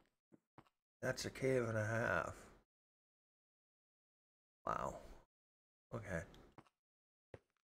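A man speaks animatedly into a close microphone.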